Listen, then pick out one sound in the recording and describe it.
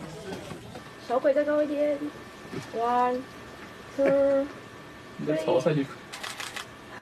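A man speaks loudly to a group.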